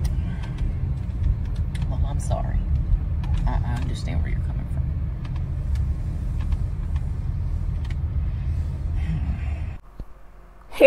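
A car engine hums low and steadily.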